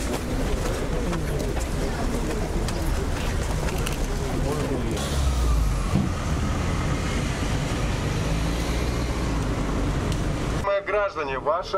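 A crowd clamours and chatters loudly outdoors.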